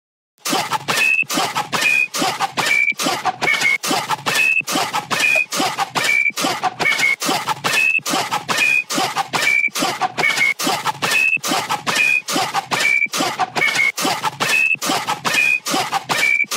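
A bright synth melody plays short repeating notes.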